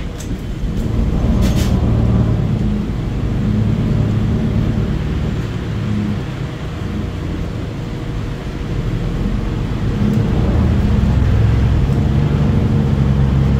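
A diesel-electric hybrid articulated bus rumbles and hums from inside while driving.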